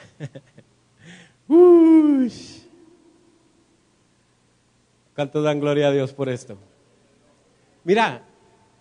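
A man preaches with fervour into a microphone through loudspeakers, in bursts with pauses.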